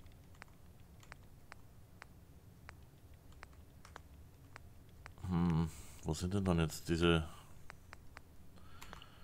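Short soft menu clicks tick at an even pace.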